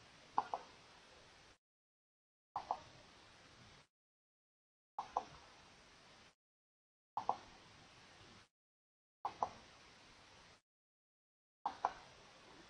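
A computer mouse clicks in quick pairs, again and again.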